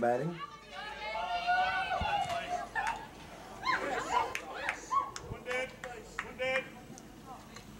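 Young girls shout and cheer outdoors at a distance.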